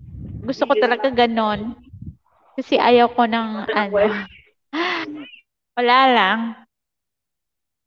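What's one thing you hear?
A young woman laughs into a close microphone.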